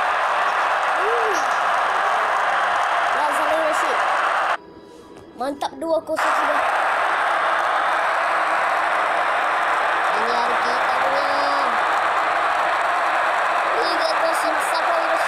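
A young boy talks close to a microphone.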